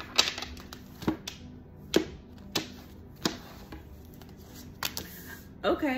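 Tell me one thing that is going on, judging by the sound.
Cards tap and slap onto a hard tabletop.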